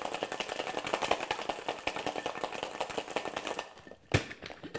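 Ice rattles rapidly in a metal cocktail shaker.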